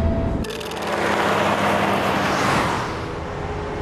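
A truck roars past on a road.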